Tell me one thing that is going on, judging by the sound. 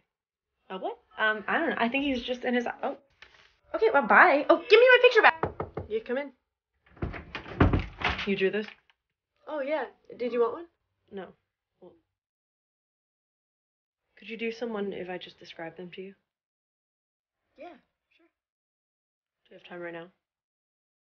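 A young woman speaks with animation close to a microphone, in short bursts with pauses.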